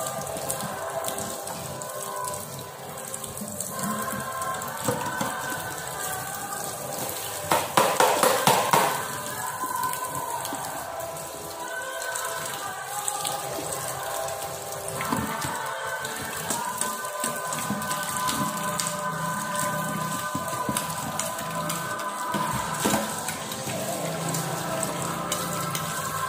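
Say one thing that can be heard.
Water runs from a tap into a metal sink.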